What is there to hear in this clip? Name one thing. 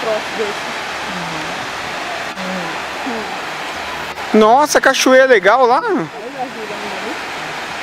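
Water rushes steadily in a stream far below.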